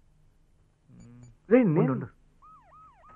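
Another young man answers calmly.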